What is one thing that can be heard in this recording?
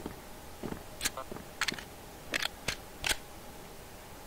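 A pistol is reloaded with sharp metallic clicks.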